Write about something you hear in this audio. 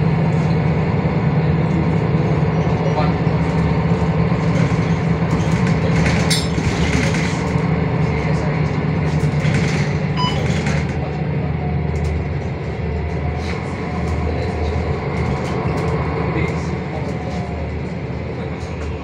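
Tyres roll on the road beneath the bus.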